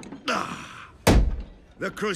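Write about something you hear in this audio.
A heavy metal fist thuds down on a wooden counter.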